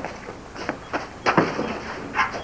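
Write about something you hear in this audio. A man strikes something with a sharp knock.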